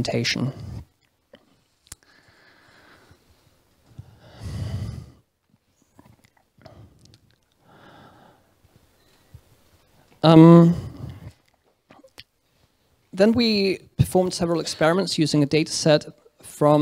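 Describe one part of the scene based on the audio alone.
A young man speaks calmly into a microphone, with pauses.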